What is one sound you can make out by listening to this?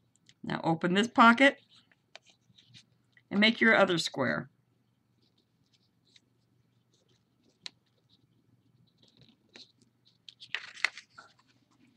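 Paper crinkles as it is folded and creased.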